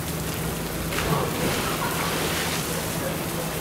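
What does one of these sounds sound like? A polar bear jumps into water with a big splash.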